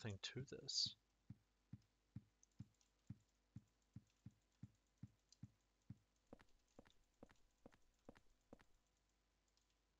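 Footsteps thud at a steady walking pace on a hard floor.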